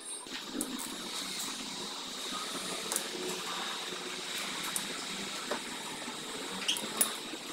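A metal wrench clicks and clanks against engine parts.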